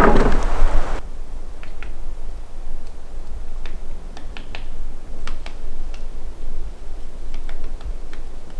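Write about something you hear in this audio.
A woodpecker taps on a tree trunk.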